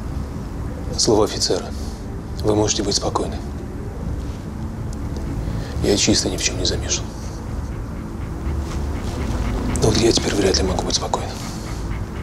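A man speaks quietly and calmly, close by.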